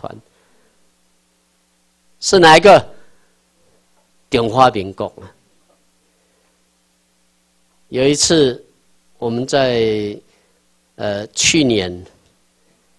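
A man speaks calmly into a microphone through a loudspeaker, in short phrases with pauses.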